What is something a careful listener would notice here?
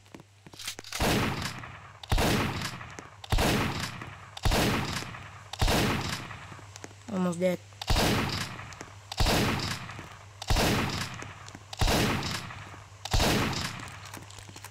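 A gun fires single loud shots at a slow, even pace, each ringing out briefly.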